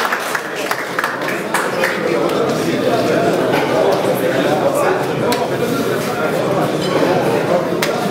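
A crowd of people chatters loudly.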